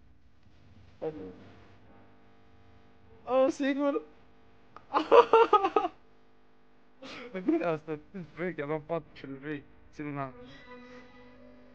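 A young man speaks with animation in short bursts close to a microphone.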